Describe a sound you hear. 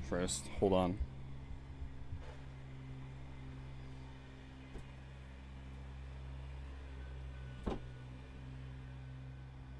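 An electric fan whirs with a steady low hum.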